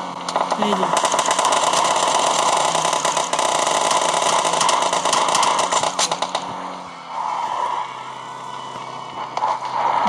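A truck engine rumbles as it drives over rough ground.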